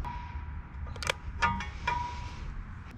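Metal parts clink lightly together.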